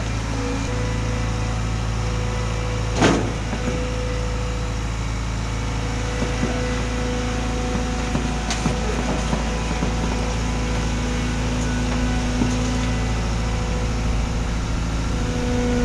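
Steel tracks clank and rattle as a loader climbs onto a trailer.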